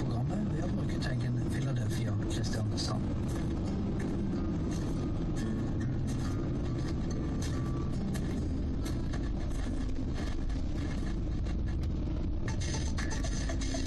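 A vehicle engine hums steadily as it drives along a road.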